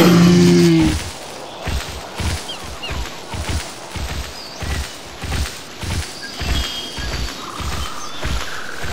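Heavy dinosaur footsteps thud at a steady pace.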